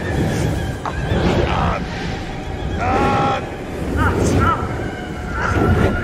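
A young man cries out in pain close by.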